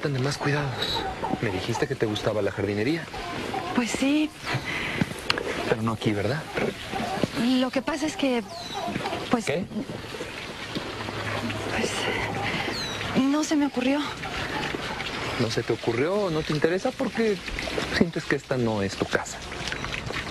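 A woman speaks emotionally, close by.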